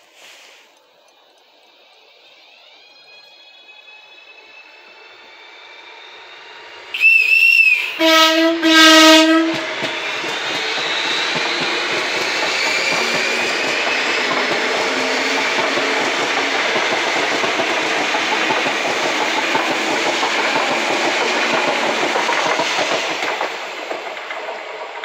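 An electric train approaches and rushes past close by with a loud, rumbling roar.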